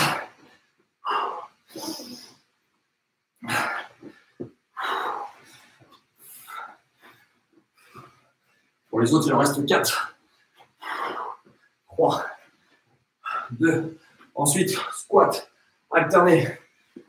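Feet thump softly on a floor mat as a man jumps and steps.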